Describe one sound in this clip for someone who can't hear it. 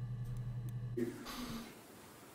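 A man speaks quietly close to a microphone.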